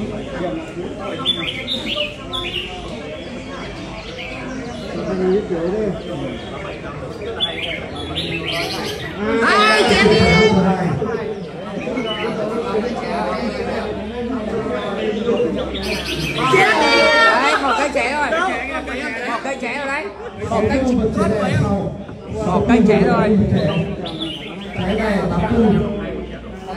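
Caged birds sing loud, rapid warbling songs.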